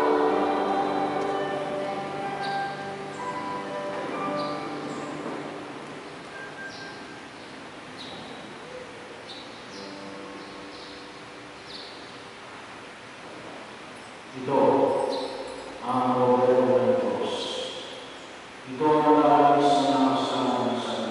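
An adult man chants through a microphone in a large echoing hall.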